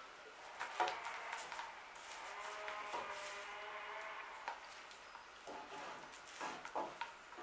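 Something rubs and scrapes on a wooden board.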